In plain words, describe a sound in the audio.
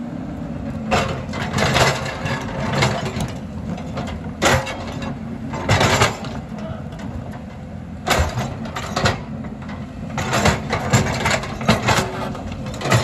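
An excavator engine rumbles steadily outdoors.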